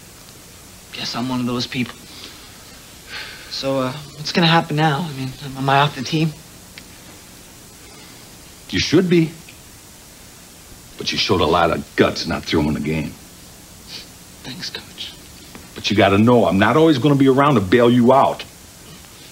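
A middle-aged man speaks sternly, close by.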